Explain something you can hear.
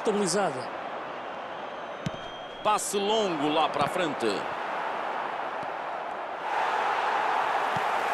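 A stadium crowd murmurs steadily and swells louder near the end.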